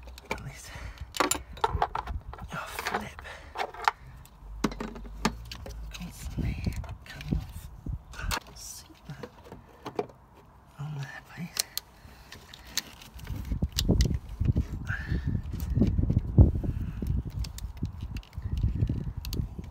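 Metal tools click and clink against engine parts.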